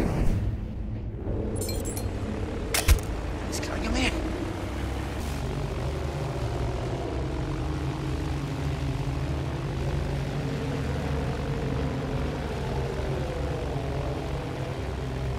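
An airship's engines drone steadily.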